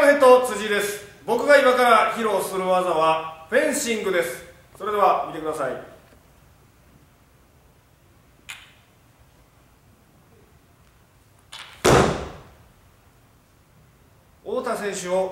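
A young man speaks loudly and with animation in an echoing hall.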